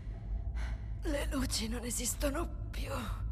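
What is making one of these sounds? Another young woman answers in a strained, weary voice, close by.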